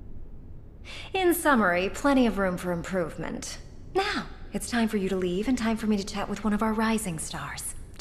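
A woman speaks calmly and clearly.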